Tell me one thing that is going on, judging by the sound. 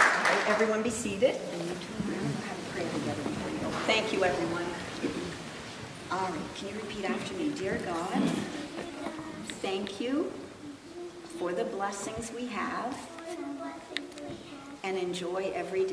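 A woman speaks quietly and slowly into a microphone.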